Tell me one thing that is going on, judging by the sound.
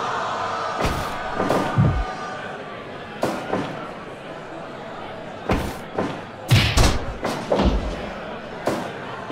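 Heavy blows and body slams thud sharply, again and again.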